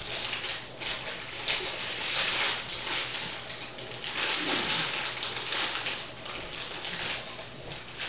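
A plastic bag crackles and crinkles in a person's hands.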